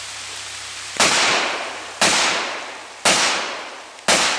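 A handgun fires loud shots outdoors, each echoing and slowly fading.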